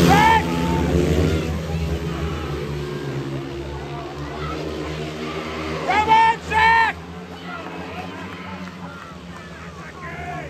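Single-cylinder speedway motorcycles race at full throttle around a track.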